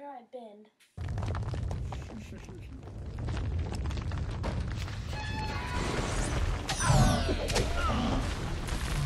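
Armoured fighters clash with clanking and heavy thuds.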